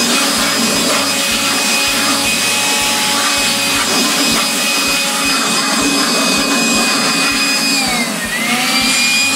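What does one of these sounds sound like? A handheld electric blower whines as it blows air, its pitch dipping briefly.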